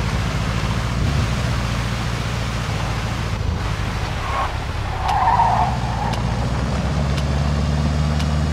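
A truck engine rumbles steadily as it drives along.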